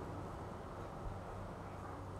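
An iron is set down on a wooden table with a soft knock.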